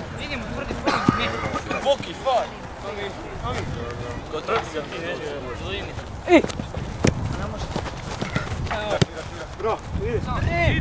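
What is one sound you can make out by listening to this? Boys shout and call out to each other across an open field.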